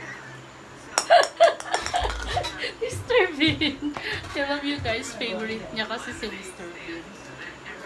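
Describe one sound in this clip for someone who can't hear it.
A young woman talks playfully nearby.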